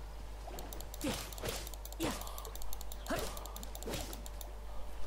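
A sword swishes and strikes in quick blows.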